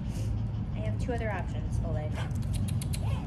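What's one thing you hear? A woman talks softly and warmly to a dog, close by.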